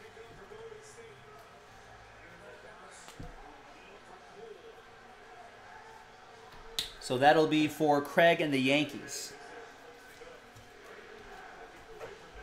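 Card packs rustle and click as a man handles them.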